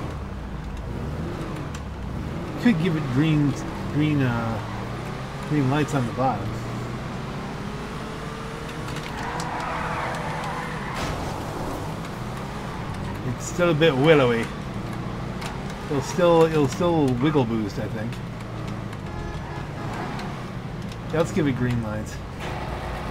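A van engine hums steadily.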